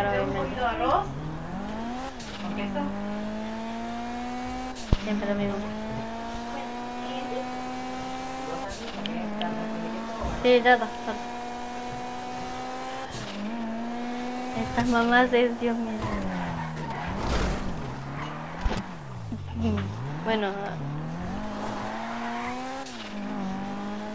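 A car engine revs hard and shifts gears as the car speeds along.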